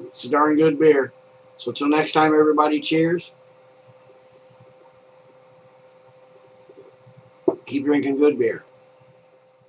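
An elderly man speaks calmly and close by.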